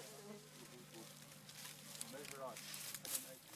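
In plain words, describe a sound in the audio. Rough rope rustles and creaks as hands pull a knot tight.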